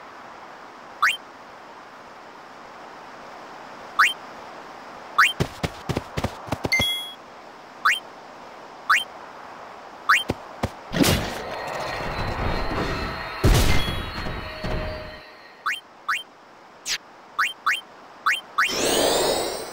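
Short electronic blips sound as a menu cursor moves.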